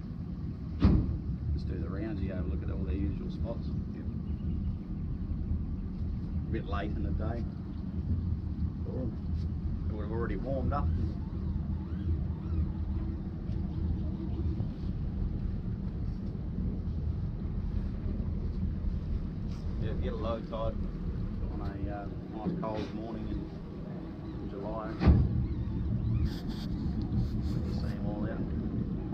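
Wind rumbles against the boat.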